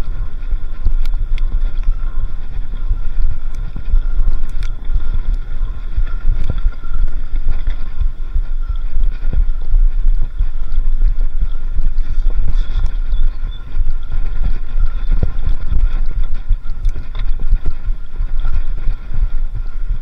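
Bicycle tyres roll and crunch over a bumpy dirt track.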